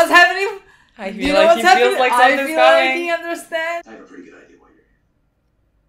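A young woman talks with animation up close.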